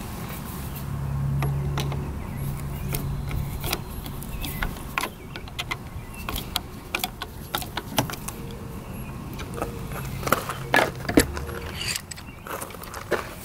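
A screwdriver taps and scrapes against a metal bolt.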